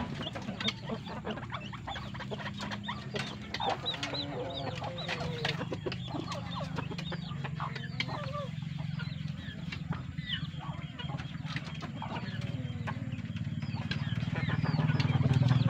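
Chickens peck at grain with quick light taps.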